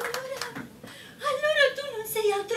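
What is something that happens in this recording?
A woman speaks with animation through a stage microphone.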